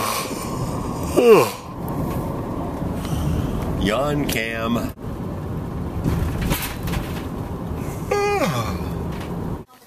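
A middle-aged man makes drawn-out vocal sounds close to a microphone.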